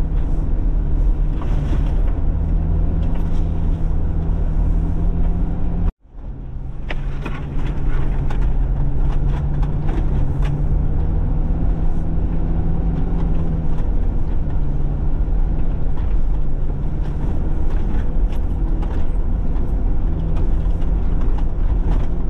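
The car body rattles and knocks over bumps.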